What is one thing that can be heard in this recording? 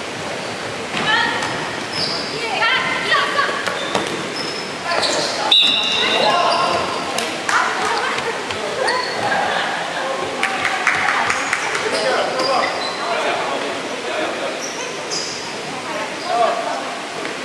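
Young women shout and call out to one another across a large echoing hall.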